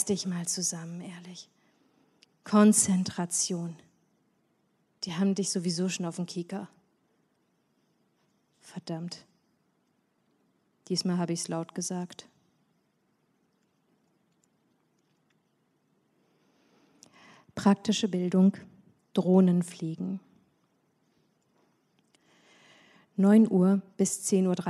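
A woman speaks calmly into a microphone, with pauses between phrases.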